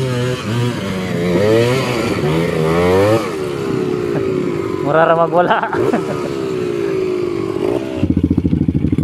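A dirt bike engine revs loudly up close, rising and falling.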